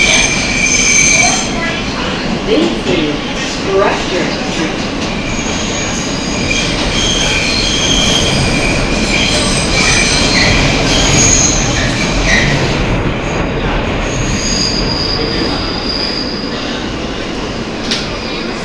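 A subway train rumbles and rattles along the tracks.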